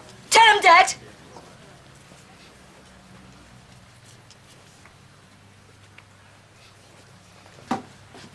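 An older man speaks loudly and sharply, close by.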